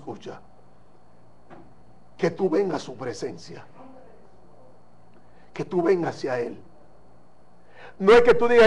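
A young man speaks with animation into a microphone, in short bursts.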